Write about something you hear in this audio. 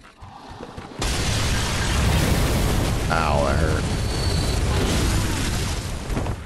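Fire bursts and roars loudly.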